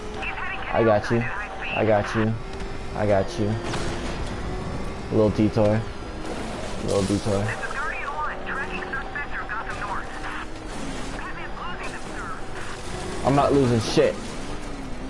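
A powerful car engine roars and revs at speed.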